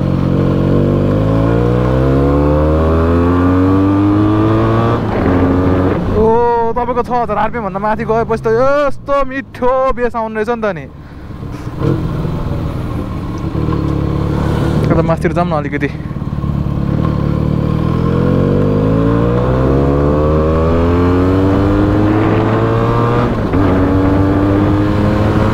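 A motorcycle engine revs up and shifts through the gears, rising in pitch again and again.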